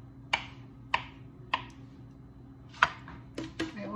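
A knife taps against a wooden cutting board.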